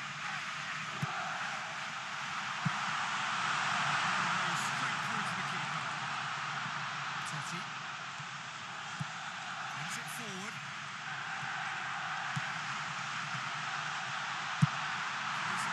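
A football is kicked with sharp thuds now and then.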